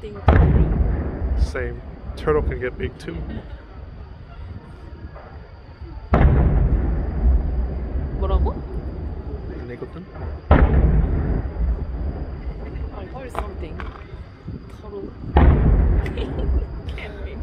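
Fireworks crackle and sizzle after the bursts.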